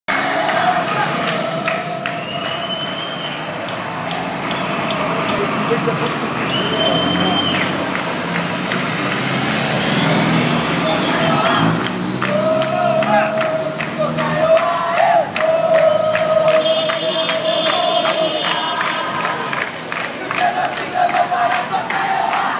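A crowd of marchers chants and cheers outdoors.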